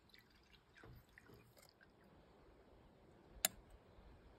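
A spoon scrapes and taps in a metal coffee pot.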